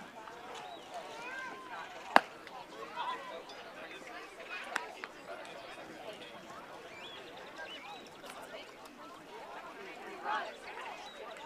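Players and spectators chatter and call out across an open field.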